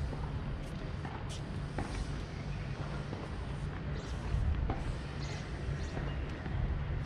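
A tennis ball is struck with sharp thwacks nearby.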